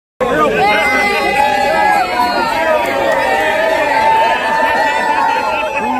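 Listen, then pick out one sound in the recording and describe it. A large crowd of excited fans shouts and cheers close by, outdoors.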